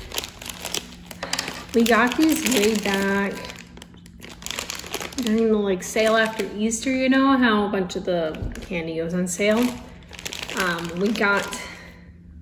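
A plastic candy wrapper crinkles in a young woman's hands.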